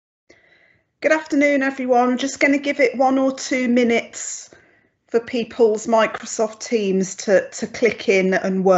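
A middle-aged woman speaks calmly through an online call microphone.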